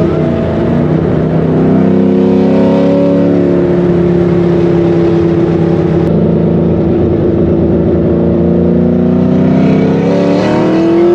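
A car engine roars loudly at high revs from inside the cabin, its pitch rising and falling.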